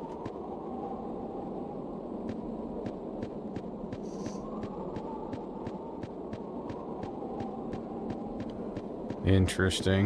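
Footsteps tap quickly and evenly.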